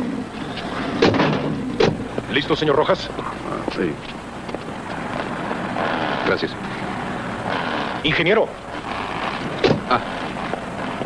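A man speaks with animation outdoors.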